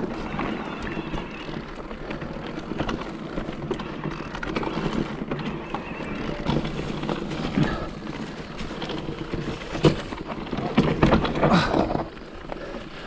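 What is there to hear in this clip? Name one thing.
Bicycle tyres rattle and crunch over a rough dirt trail.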